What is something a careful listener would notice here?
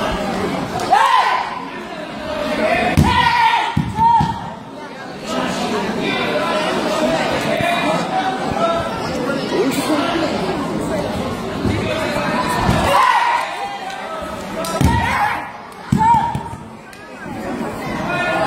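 Bodies thud onto a mat.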